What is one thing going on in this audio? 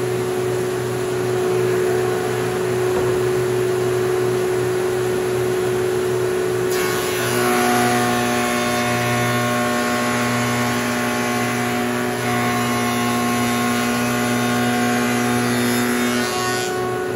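A workshop machine hums steadily.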